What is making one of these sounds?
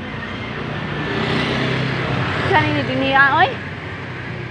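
A middle-aged woman laughs close by.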